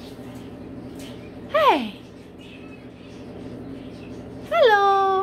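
A cockatoo flaps its wings.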